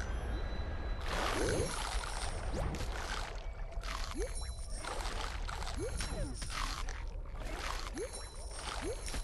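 A shark chomps on small fish with sharp crunching bites.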